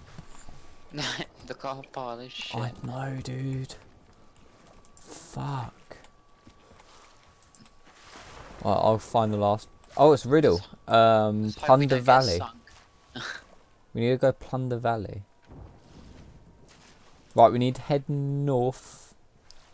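A man talks casually into a microphone, close and clear.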